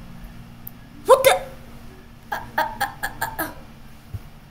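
Short game sound effects click and pop.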